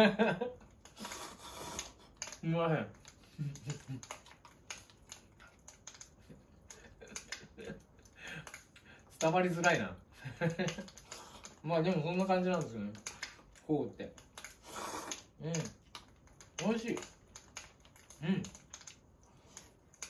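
A man slurps and eats noodles.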